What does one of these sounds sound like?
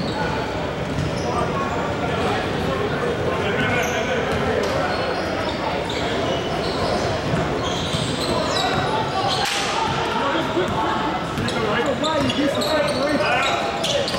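Players shout and call out in a large echoing gym.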